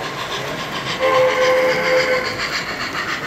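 A model steam locomotive's whistle blows briefly.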